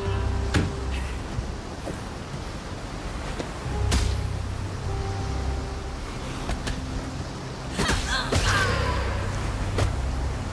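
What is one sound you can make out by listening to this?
Sharp sword strikes and impacts ring out in short bursts.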